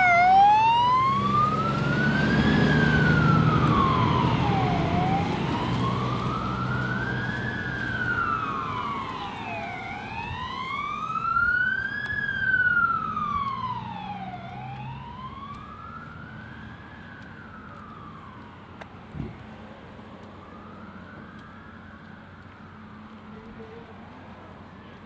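A fire engine siren wails, rising and falling slowly as the truck drives away and fades into the distance.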